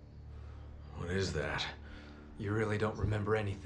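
A man speaks in a low, serious voice.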